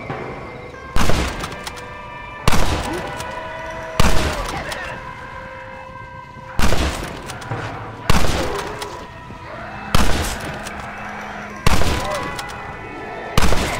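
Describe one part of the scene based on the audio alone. A rifle fires loud shots, one after another, each with a rolling echo.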